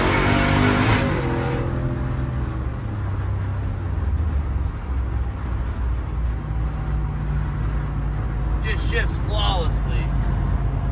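A vehicle engine drones steadily at cruising speed.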